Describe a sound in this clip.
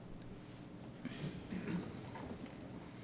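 A man speaks briefly and quietly through a microphone.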